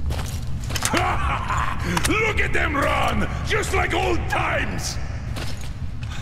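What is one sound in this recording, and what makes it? A man speaks loudly and cheerfully.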